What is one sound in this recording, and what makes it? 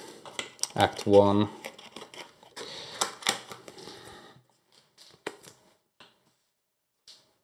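Game pieces clatter and cards rustle as they are handled on a table.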